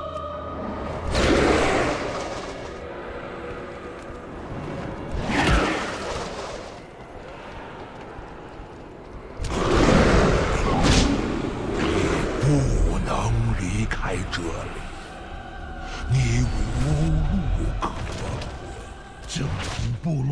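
Magic spells whoosh and crackle in loud bursts.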